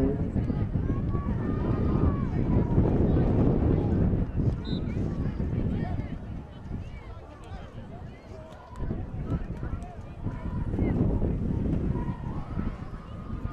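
A crowd of spectators chatters in the distance.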